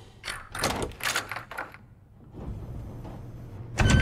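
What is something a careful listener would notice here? A key turns in a door lock with a click.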